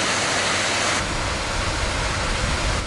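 Water splashes steadily from a fountain.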